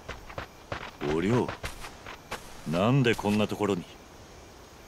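A man answers in a low, surprised voice.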